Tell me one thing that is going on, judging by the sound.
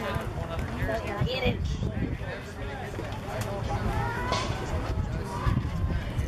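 Several people talk and call out nearby outdoors.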